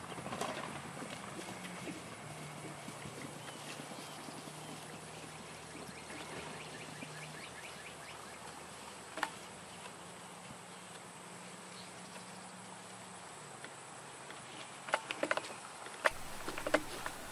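Horses' hooves thud softly on grass at a gallop.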